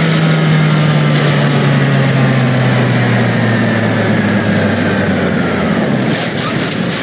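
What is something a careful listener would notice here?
A heavy truck engine drones loudly and slowly drops in pitch.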